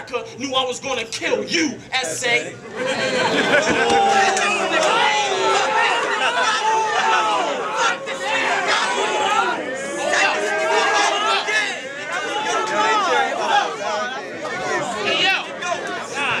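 A crowd cheers and shouts in an echoing room.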